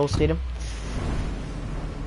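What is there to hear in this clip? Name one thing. Wind rushes loudly during a fall through the air in a video game.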